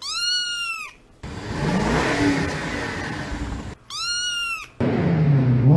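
A kitten meows.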